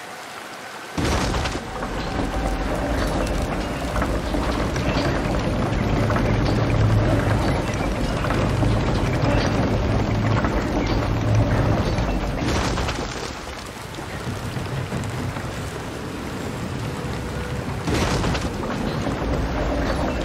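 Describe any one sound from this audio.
Water pours down with a steady rushing roar.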